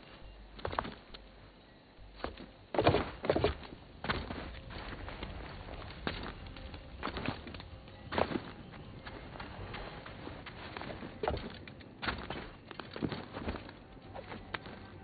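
Footsteps run over dirt and stone.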